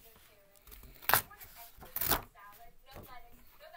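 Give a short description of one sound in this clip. Paper rustles and flaps close by.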